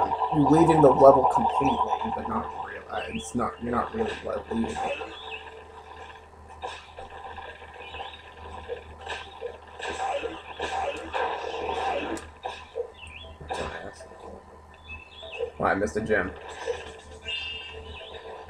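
Video game sound effects chirp and burst through a television speaker.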